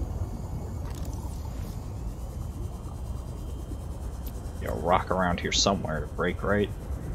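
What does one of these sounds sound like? A low underwater engine hum drones steadily.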